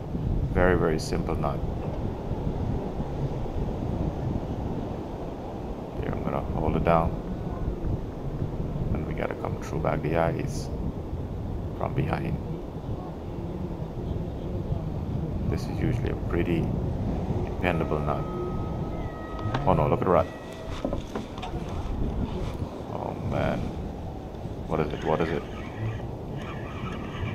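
Wind blows steadily and rumbles against the microphone outdoors.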